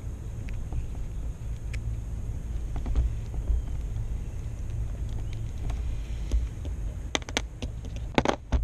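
Small metal parts click and scrape against each other.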